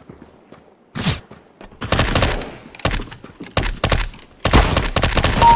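A submachine gun fires short bursts of shots.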